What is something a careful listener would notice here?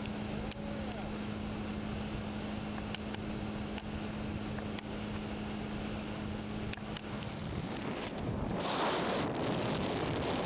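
Wind buffets strongly outdoors.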